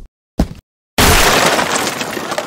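A wooden crate bursts apart with a loud crash.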